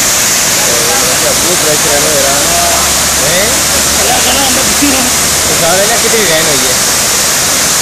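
A boy talks loudly nearby over the rushing water.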